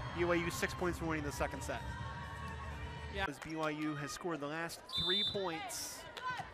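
Young women cheer and shout close by.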